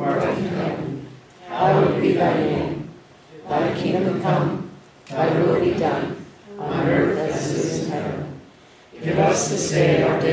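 A man reads aloud in short phrases with pauses, echoing through a large hall.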